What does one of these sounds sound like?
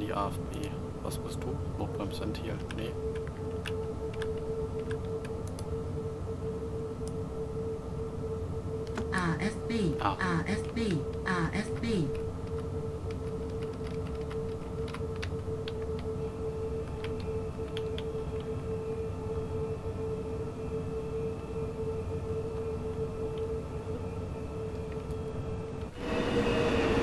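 A train's electric motor hums steadily from inside the cab.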